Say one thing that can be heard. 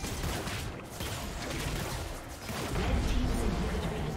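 A structure explodes with a deep boom.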